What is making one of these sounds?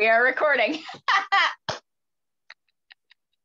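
A young woman laughs loudly over an online call.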